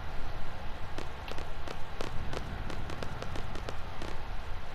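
Footsteps tap on a stone path.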